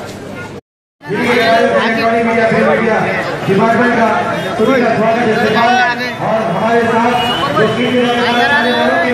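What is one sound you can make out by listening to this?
A large crowd of men shout and chant loudly outdoors.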